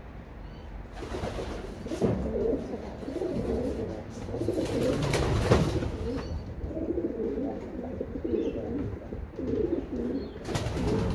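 Homing pigeons coo.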